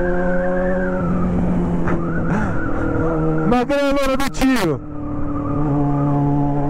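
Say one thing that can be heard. A motorcycle engine revs up and down sharply.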